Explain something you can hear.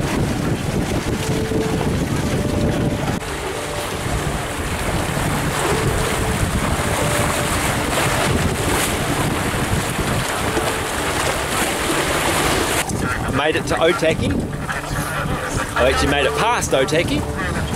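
Choppy water splashes and rushes past a moving boat.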